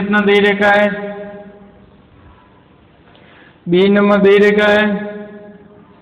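A man speaks loudly and drawn out in an echoing room.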